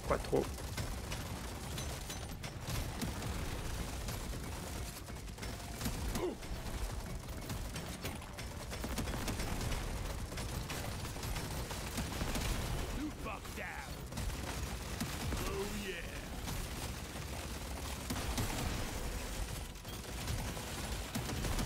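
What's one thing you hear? Game gunfire and explosions crackle continuously.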